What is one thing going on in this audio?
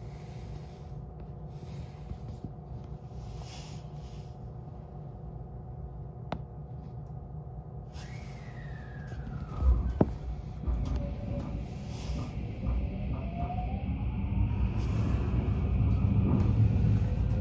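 A train rumbles steadily from inside the carriage.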